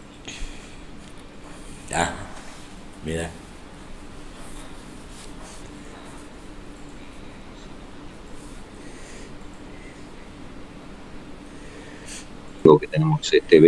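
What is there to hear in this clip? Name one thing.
An elderly man talks faintly over an online call.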